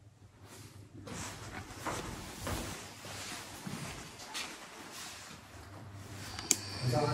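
Footsteps shuffle on a hard tiled floor.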